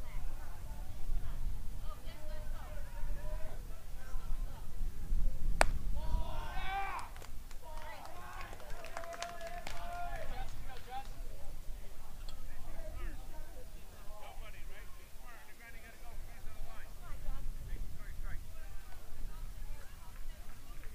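Young male players shout and cheer across an open field.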